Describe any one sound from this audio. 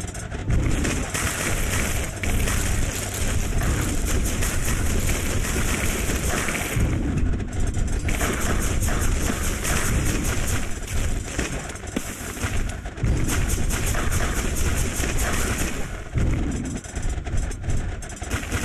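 Rapid shooting and blast effects from a video game crackle without pause.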